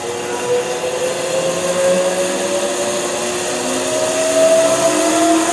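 A band saw motor runs with a steady whirring hum that slowly rises in pitch.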